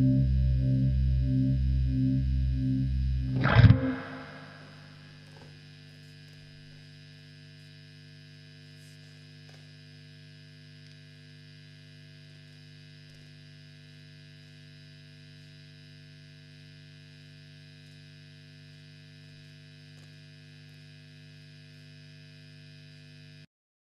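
An amplifier hums steadily.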